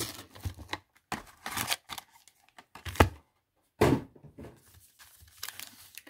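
A plastic card pack rustles and crinkles in someone's hands.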